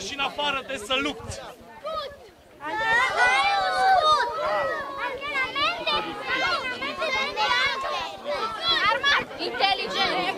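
A man speaks loudly to a crowd outdoors.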